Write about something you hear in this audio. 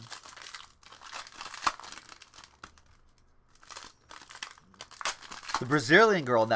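Plastic wrapping crinkles and rustles as a pack is torn open.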